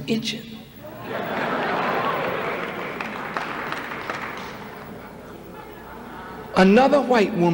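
A large audience applauds and cheers.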